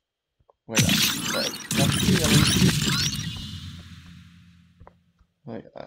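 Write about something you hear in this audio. Electronic game reward sounds whoosh and sparkle loudly, then fade away.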